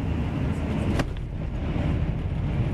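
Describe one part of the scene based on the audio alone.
Another train suddenly whooshes past close by with a sharp thump.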